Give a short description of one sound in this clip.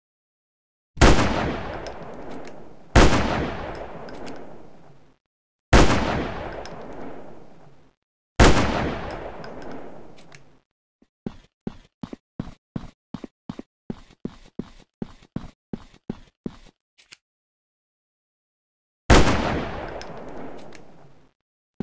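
A rifle fires loud single shots that echo away.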